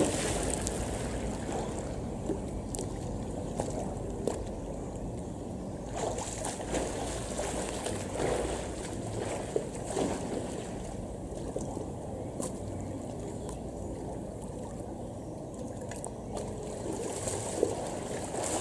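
Water laps and splashes close by.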